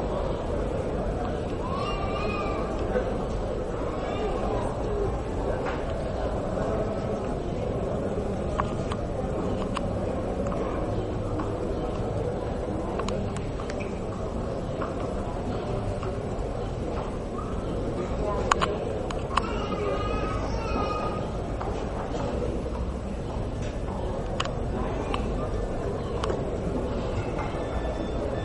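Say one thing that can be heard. Horse hooves thud softly on sand as a horse trots.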